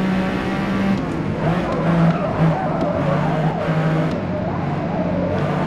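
A car engine's pitch drops as the car slows.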